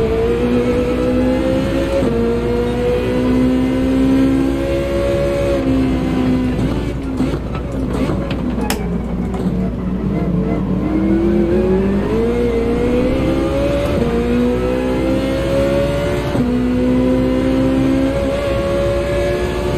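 A racing car engine roars and shifts up through the gears.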